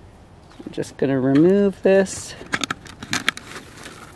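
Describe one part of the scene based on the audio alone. A thin plastic cover crinkles and taps under a hand.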